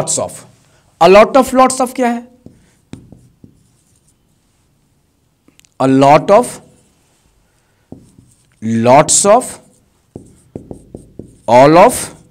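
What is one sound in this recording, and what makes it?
A man speaks clearly and emphatically, in short bursts with pauses.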